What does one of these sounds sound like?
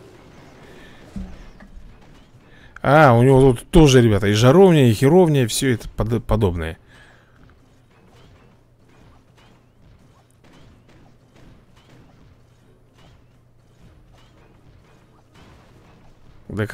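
Small cannons thud and fire crackles in a cartoon battle.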